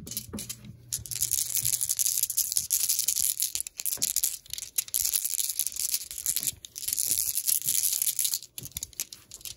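A cloth pouch rustles and scrapes as it is handled up close.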